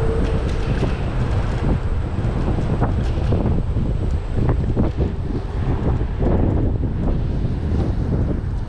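A motorcycle engine rumbles steadily close by.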